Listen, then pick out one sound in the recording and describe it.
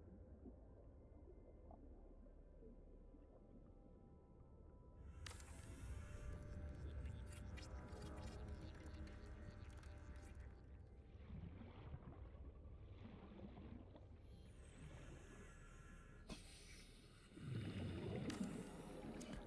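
Water rumbles low and steady all around, as if deep underwater.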